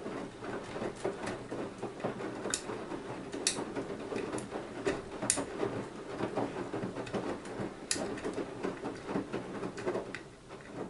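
A washing machine drum hums steadily as it turns.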